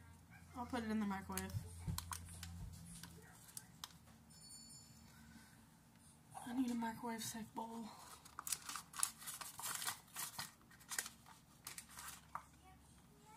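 Paper wrappers crinkle and rustle.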